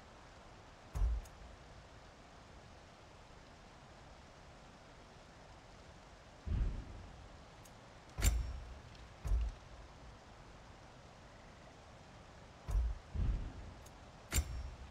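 Soft game menu thuds and clicks sound as selections change.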